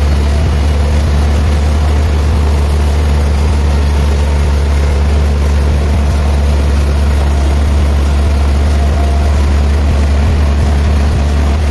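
A saw blade rasps through wood with a constant hiss.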